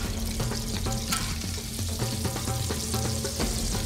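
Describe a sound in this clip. A spatula scrapes across a pan.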